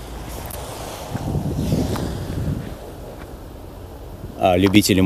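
Bicycle tyres crunch and hiss over slushy snow.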